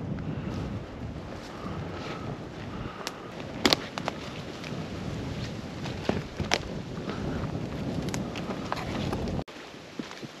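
Footsteps crunch through dry grass and brush.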